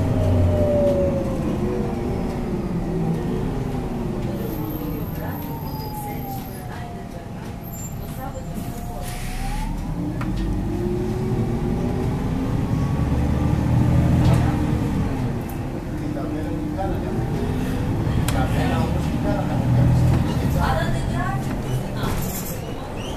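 A bus engine hums and whines as it speeds up and slows down, heard from inside.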